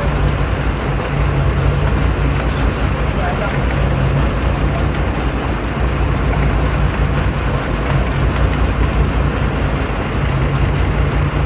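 Wind blows across the water outdoors.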